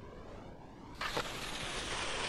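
Skis land hard on snow with a thud.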